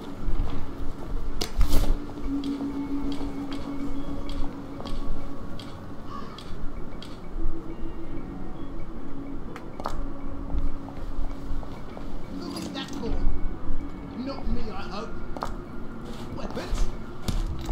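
Footsteps tread on wet cobblestones.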